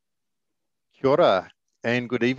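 A man speaks calmly through a headset microphone on an online call.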